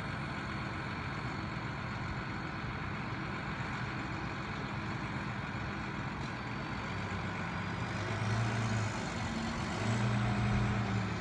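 A tractor engine rumbles steadily nearby, growing louder as it pulls trailers past.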